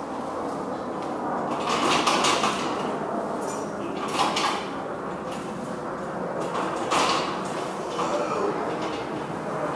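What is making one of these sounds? A metal scaffold rattles and clanks.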